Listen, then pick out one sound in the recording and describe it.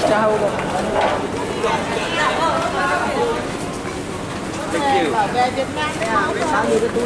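A crowd of adults chatters on all sides.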